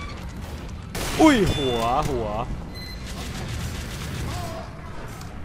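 A rifle fires with a sharp crack.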